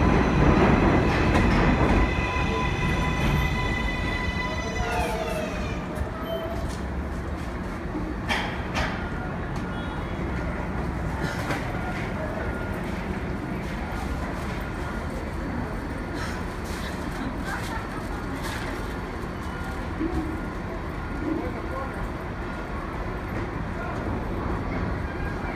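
A subway train rumbles slowly along elevated tracks.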